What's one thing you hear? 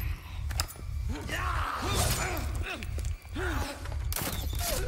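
A man shouts and groans in a harsh voice nearby.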